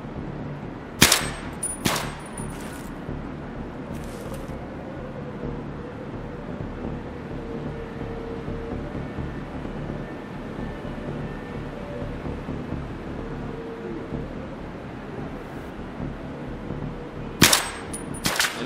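Loud rifle shots crack, each followed by a brief echo.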